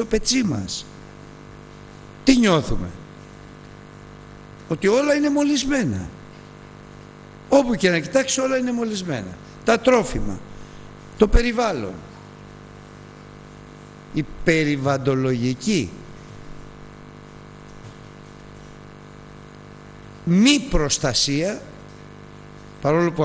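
An elderly man speaks slowly and with emphasis through a microphone, with pauses between phrases, in a slightly echoing room.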